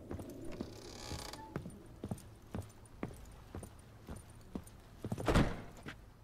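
Footsteps thud on a wooden floor at a steady pace.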